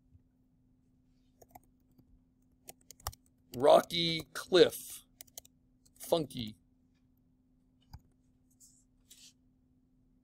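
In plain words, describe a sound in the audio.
Keys click softly on a keyboard.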